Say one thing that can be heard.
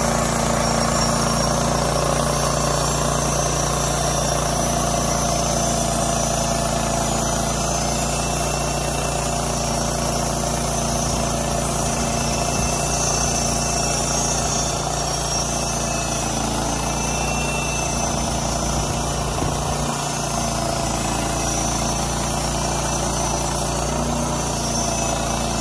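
A sawmill engine drones steadily close by.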